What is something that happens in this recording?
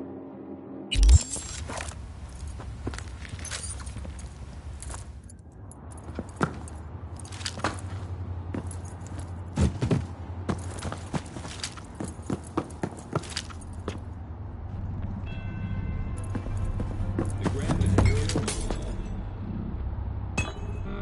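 Footsteps thud on a hard floor at a walking pace.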